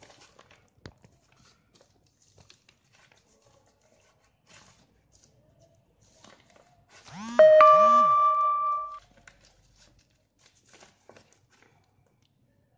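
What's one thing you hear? Paper crinkles and rustles as hands fold it.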